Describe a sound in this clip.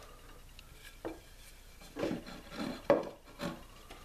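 A wooden strip knocks against a table.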